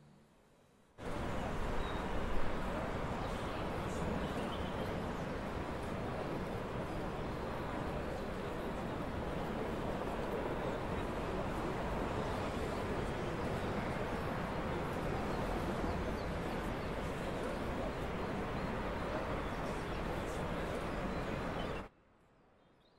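A stationary electric train hums steadily outdoors.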